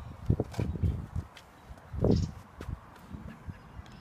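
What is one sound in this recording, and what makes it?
A putter taps a golf ball.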